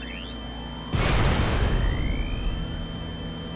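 A lift whooshes as it rises fast.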